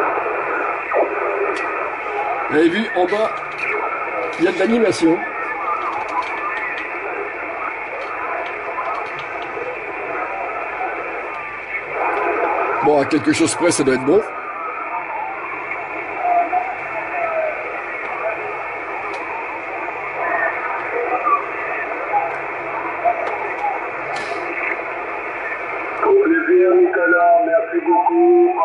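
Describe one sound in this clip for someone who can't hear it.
Distorted, crackling voices come through a radio loudspeaker.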